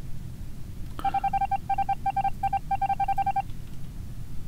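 A game plays a rapid pulsing electronic tone.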